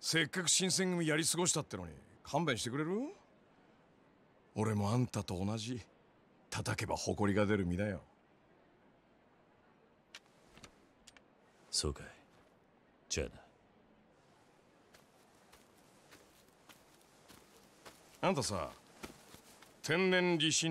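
A man speaks calmly and slowly.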